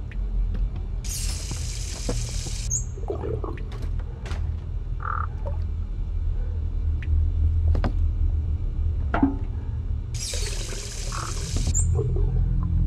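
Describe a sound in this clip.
Water gushes from a tap in short bursts.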